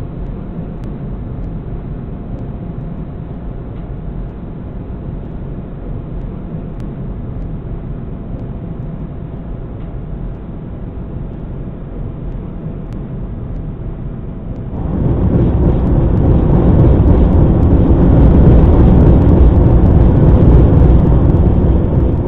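A tram rumbles steadily along the rails, growing louder as it speeds up.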